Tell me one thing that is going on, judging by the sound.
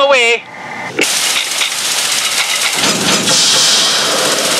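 A fire hose sprays a hissing jet of water.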